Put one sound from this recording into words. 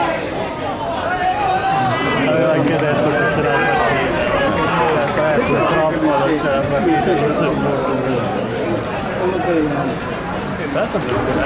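A crowd of men nearby chatter and call out outdoors.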